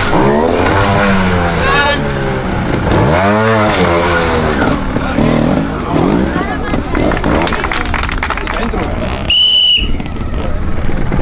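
A motorcycle engine revs up and down in sharp bursts close by.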